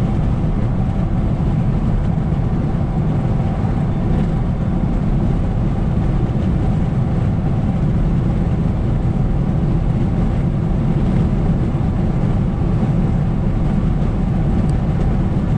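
A car's engine hums steadily from inside.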